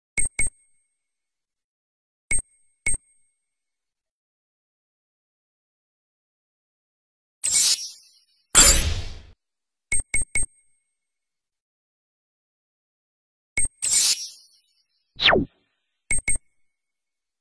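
Short electronic blips sound as menu choices change.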